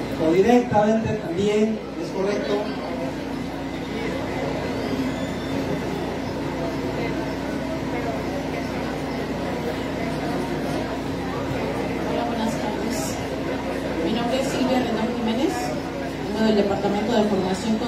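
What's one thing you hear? A man speaks calmly through a microphone and loudspeakers.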